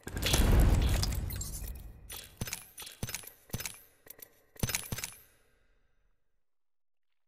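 Game menu sounds whoosh and click in quick bursts.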